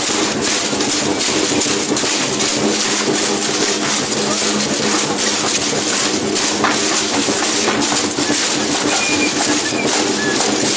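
Rattles and ankle bells shake in rhythm.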